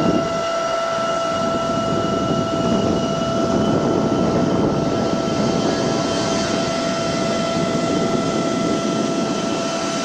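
Jet engines roar as a plane speeds up along a runway.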